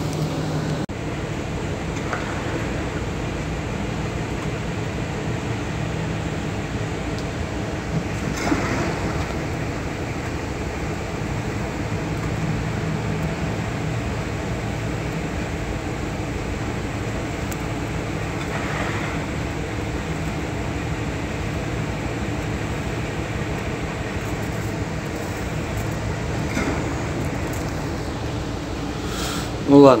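A steady low engine hum rumbles throughout.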